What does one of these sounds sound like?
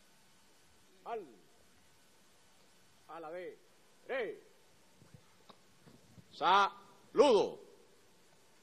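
A man shouts loud military commands into a microphone outdoors.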